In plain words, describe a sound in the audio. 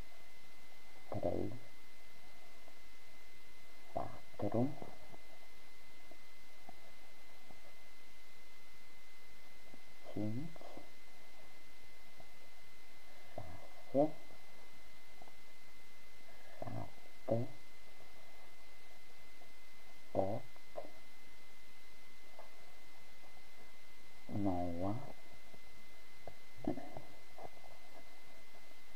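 A crochet hook softly scrapes and pulls through yarn.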